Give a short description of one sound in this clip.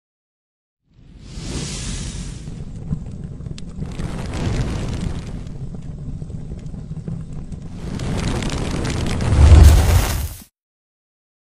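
Fire whooshes and roars close by.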